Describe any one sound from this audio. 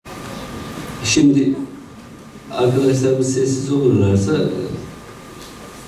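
A man speaks slowly into a microphone, heard through loudspeakers in an echoing hall.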